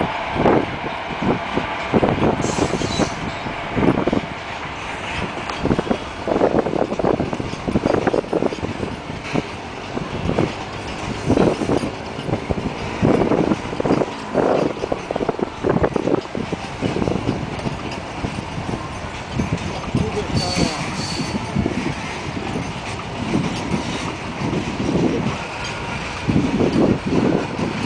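A long freight train rumbles past close by, wheels clattering rhythmically over the rail joints.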